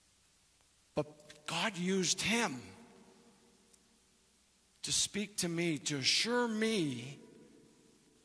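A man speaks slowly and clearly through a microphone in a large echoing hall.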